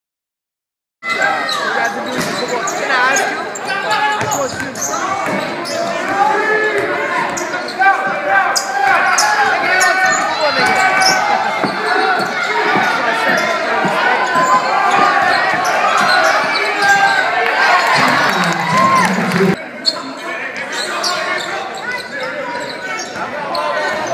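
Sneakers squeak sharply on a court.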